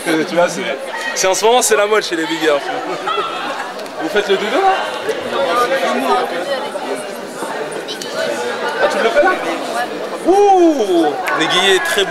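Young women chat and laugh close by.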